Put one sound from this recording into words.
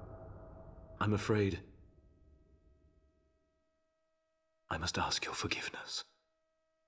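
A man speaks briefly close to a microphone.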